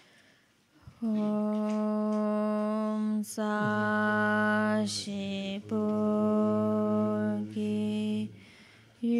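An elderly man chants in a deep, drawn-out voice through a microphone.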